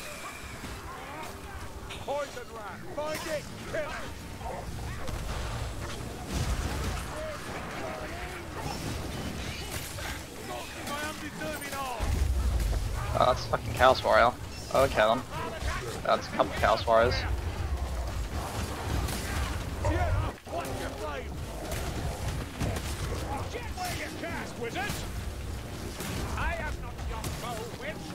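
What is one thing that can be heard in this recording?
Blades clash and thud against bodies in melee combat.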